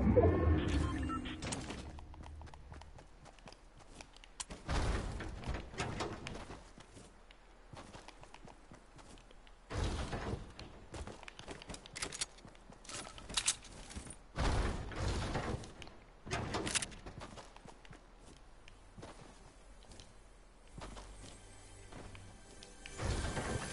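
Quick footsteps patter on grass and pavement.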